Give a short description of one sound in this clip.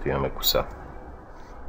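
A man speaks briefly and close by.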